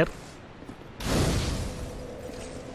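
A fire flares up with a sudden whoosh.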